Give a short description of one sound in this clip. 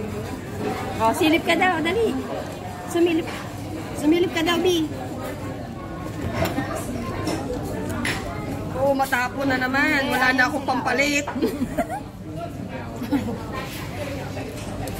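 A young woman talks and laughs with animation close by.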